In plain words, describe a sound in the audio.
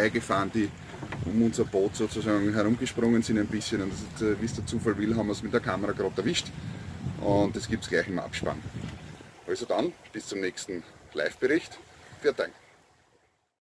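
A middle-aged man talks calmly and close up through a headset microphone.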